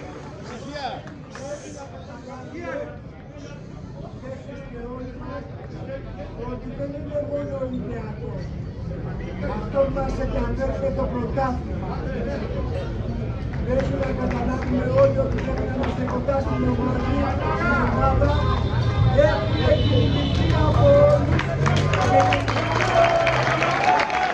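A large crowd of men chants loudly and rhythmically outdoors, growing louder.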